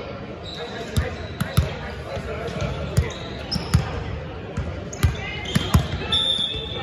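A volleyball bounces repeatedly on a wooden floor.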